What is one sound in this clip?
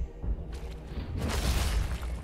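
Metal weapons clash with a sharp ring.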